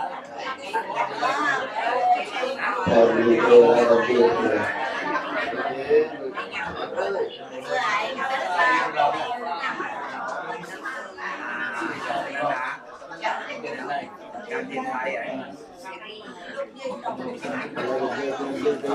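A group of men and women chant together in unison in a room.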